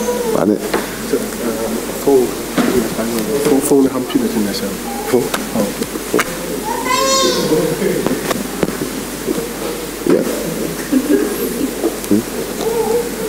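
A middle-aged man speaks with animation over a microphone in a large echoing hall.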